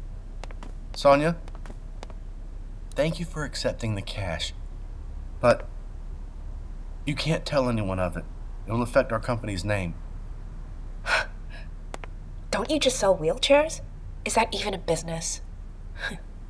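A young woman speaks with surprise, close by.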